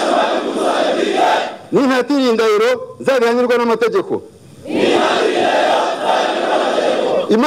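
A large group of men chants loudly in unison outdoors.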